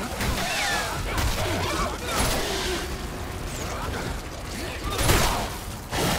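A heavy blade slashes into flesh with wet thuds.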